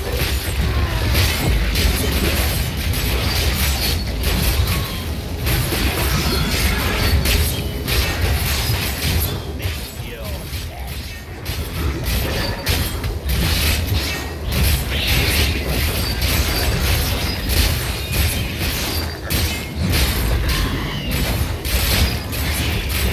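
Fiery spell blasts crackle and boom in a fight.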